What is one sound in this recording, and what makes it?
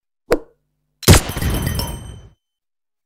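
A bright chime with a whoosh rings out from a game.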